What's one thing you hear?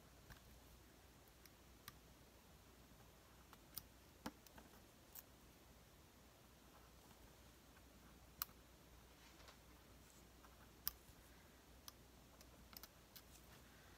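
Small tools tap and click lightly on a work surface.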